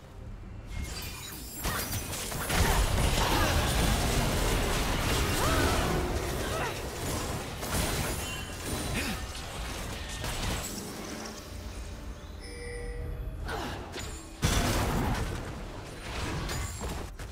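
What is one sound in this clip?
Spell and combat effects crackle and whoosh in a video game battle.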